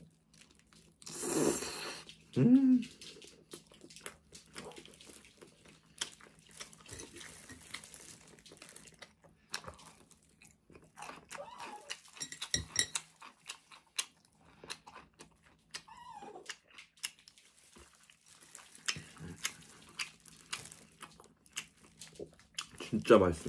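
Foil crinkles and rustles.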